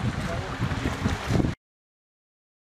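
Cattle splash loudly through shallow water.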